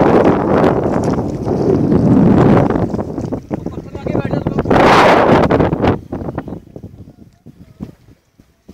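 River water rushes and splashes close by.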